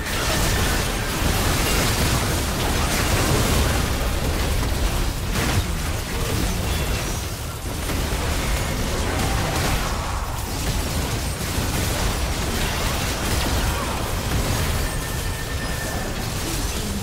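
Video game spell effects crackle and burst in a fast battle.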